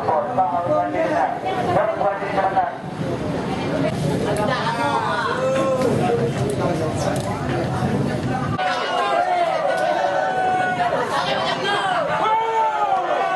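Several adult men talk nearby with animation, with voices overlapping.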